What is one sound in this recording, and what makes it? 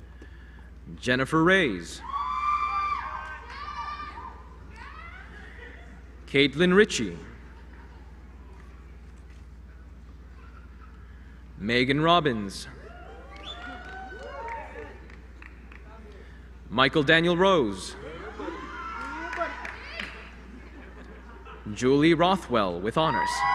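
A young man reads out names one at a time through a microphone and loudspeakers in a large hall.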